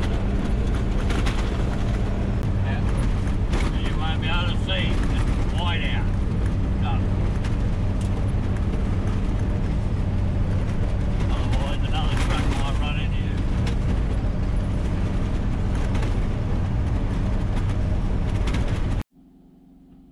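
A vehicle engine rumbles steadily while tyres roll over a rough dirt road.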